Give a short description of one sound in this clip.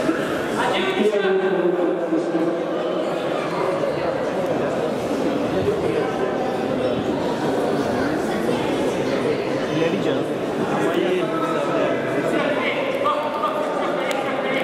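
Spectators chatter and call out in an echoing indoor hall.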